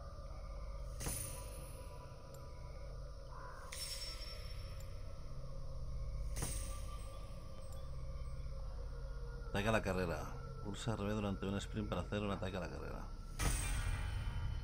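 A bright chime rings out now and then.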